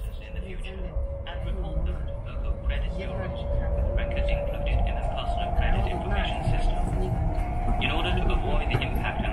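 A train's motor hums with a steady whine that slowly rises.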